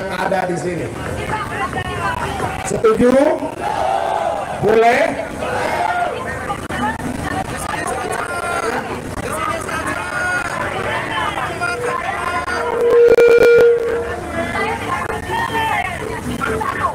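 A large crowd cheers and chants.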